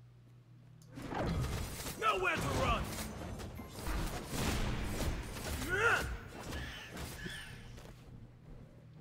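Magic blasts crackle and boom during a fight.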